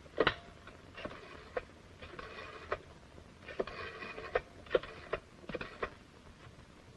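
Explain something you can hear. A rotary phone dial whirs and clicks.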